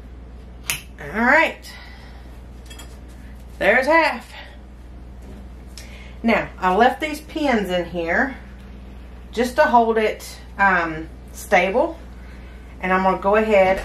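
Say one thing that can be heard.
A woman talks calmly nearby.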